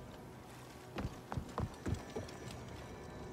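Footsteps thud quickly across wooden boards.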